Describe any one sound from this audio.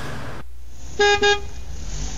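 A car horn honks twice.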